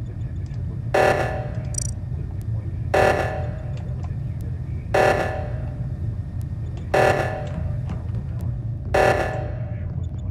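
An alarm blares in short bursts, repeating every two seconds.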